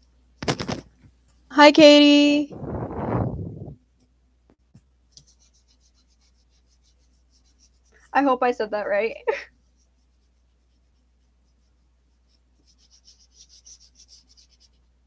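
An eraser rubs back and forth on paper.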